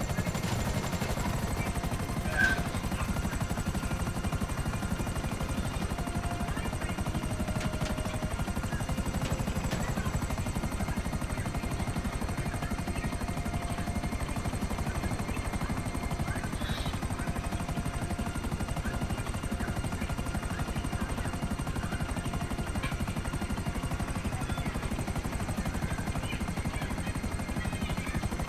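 A helicopter's rotor thumps steadily and loudly close by.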